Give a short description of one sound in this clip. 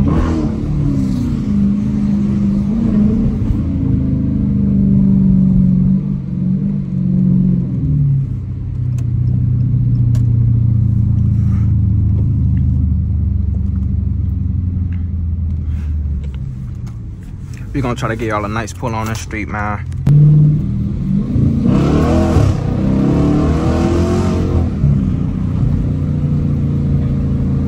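A Hemi V8 muscle car engine rumbles, heard from inside the cabin.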